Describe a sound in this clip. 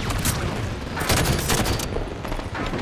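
A rifle fires rapid bursts of shots.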